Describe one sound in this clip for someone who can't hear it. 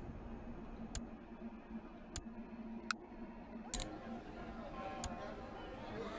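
Short menu clicks sound now and then.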